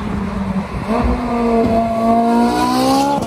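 A sports car engine roars as the car drives past close by.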